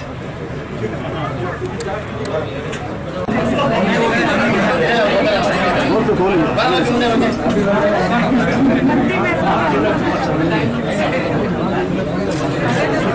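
A crowd murmurs and chatters close by.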